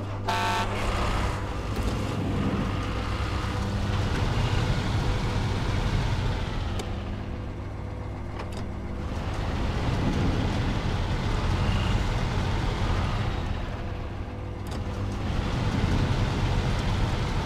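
A heavy truck engine rumbles and revs as the truck drives slowly over rough ground.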